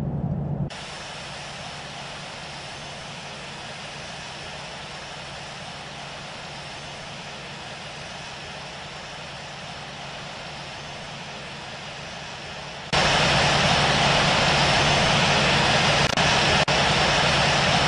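A jet airliner's engines hum steadily while taxiing, then roar much louder.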